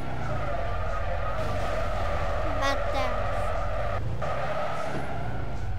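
Tyres screech as a game car drifts.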